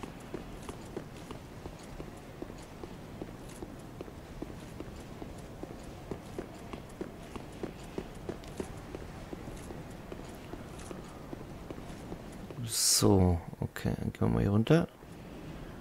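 Armoured footsteps run quickly across stone.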